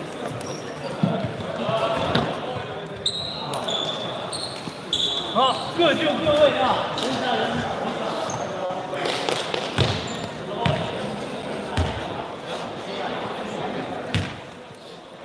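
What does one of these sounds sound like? A basketball bounces with sharp thuds.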